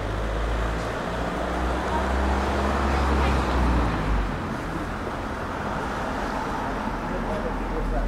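People murmur faintly in the distance along a street.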